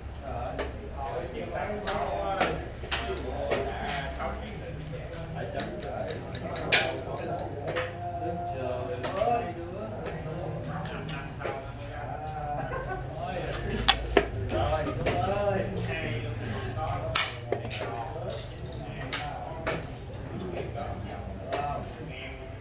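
Men talk casually nearby.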